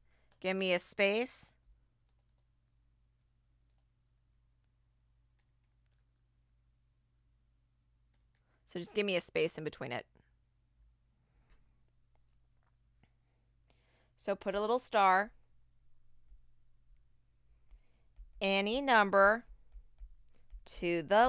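A woman speaks calmly into a microphone in short phrases with long pauses.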